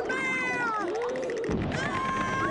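A large cartoon creature lets out a loud, wavering howl.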